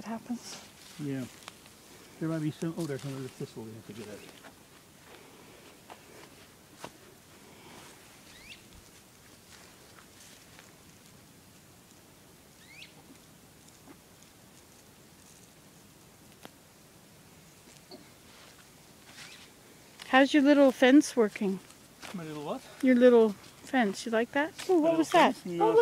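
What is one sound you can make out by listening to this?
Footsteps scuff softly on dry dirt.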